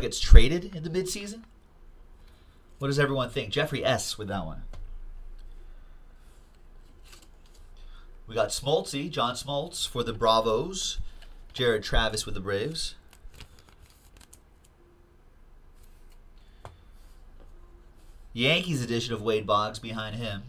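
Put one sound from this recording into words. Cardboard cards rustle and slide in hands.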